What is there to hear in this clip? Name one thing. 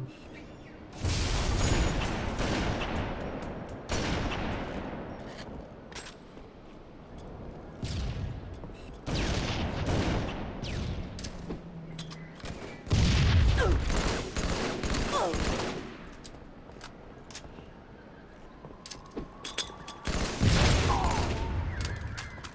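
Sniper rifle shots boom loudly, each followed by a long rumbling echo.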